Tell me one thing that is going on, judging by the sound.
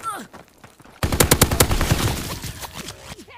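A rifle fires rapid bursts of loud shots.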